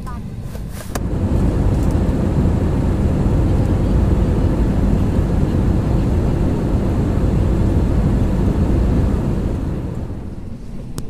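A jet engine roars loudly and steadily.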